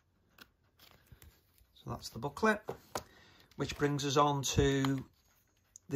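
A stiff card slides and taps on a wooden surface.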